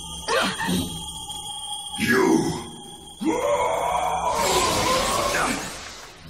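Magical energy crackles and hums.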